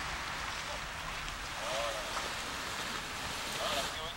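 A paraglider's fabric wing rustles and flaps as it collapses onto the grass.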